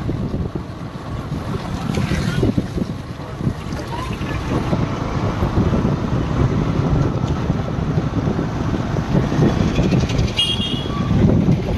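Motorbikes ride past on a wet road.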